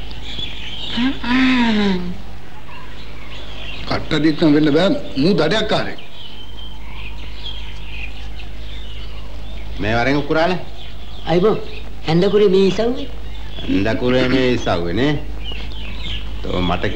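Men talk with animation, close by.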